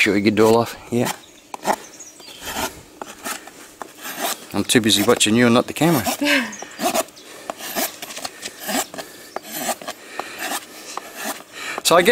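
A hoof rasp files across a horse's hoof in rough strokes.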